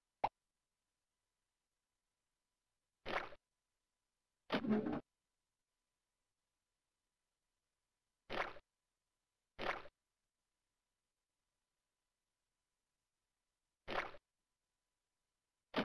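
Short cartoonish game sound effects play in brief bursts, with silence between them.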